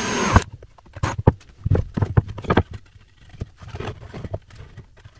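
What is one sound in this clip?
Wooden boards knock and clatter against each other.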